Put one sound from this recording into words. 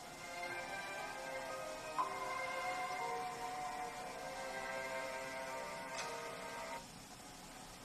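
Game music plays from a small built-in speaker, then stops abruptly.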